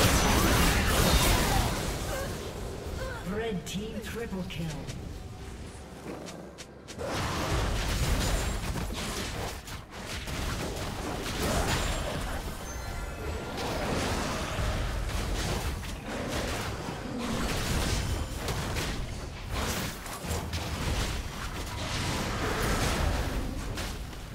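Spells and attacks in a game blast and clash rapidly.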